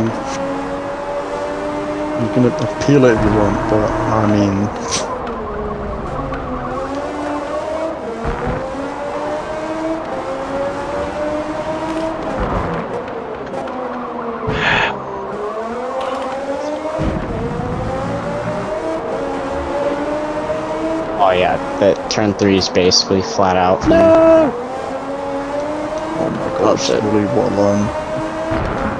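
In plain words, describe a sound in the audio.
A racing car engine whines loudly, rising and falling in pitch as the car speeds up and brakes for corners.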